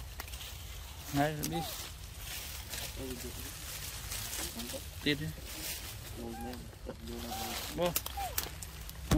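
A young monkey squeaks and chirps in short high calls.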